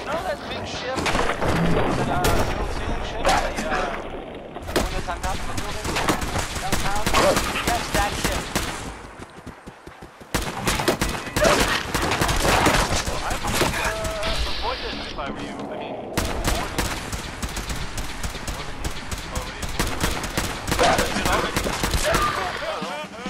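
A laser rifle fires in quick bursts of shots.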